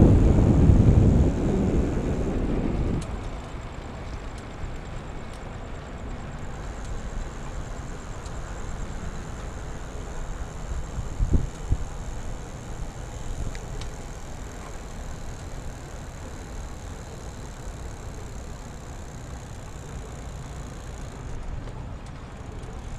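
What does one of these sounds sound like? Wind rushes past the microphone outdoors, loudest at first.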